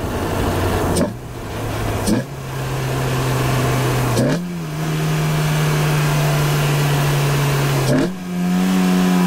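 A car engine briefly drops in pitch with each quick gear change.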